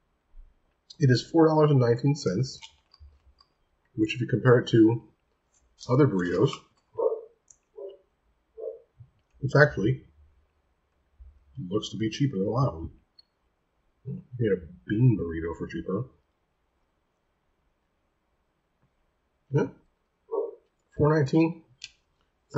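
A man speaks calmly and closely into a microphone, pausing between phrases.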